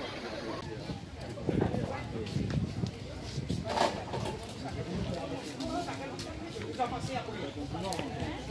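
Footsteps scuff on concrete steps.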